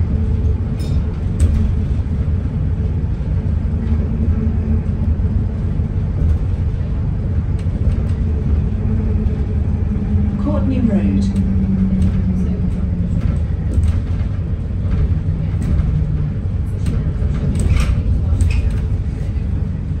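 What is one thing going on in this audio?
A bus rattles and clicks over bumps in the road.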